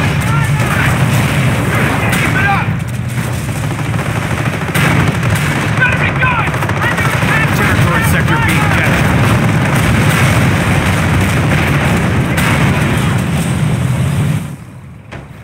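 Heavy tank engines rumble steadily.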